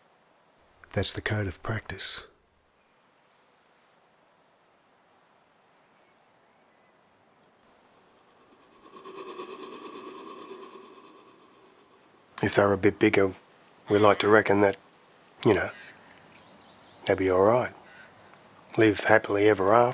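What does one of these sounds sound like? A middle-aged man speaks calmly and close by, in pauses.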